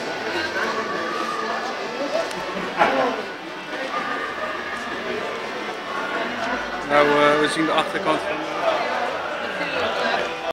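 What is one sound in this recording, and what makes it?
Several adults talk and chatter nearby.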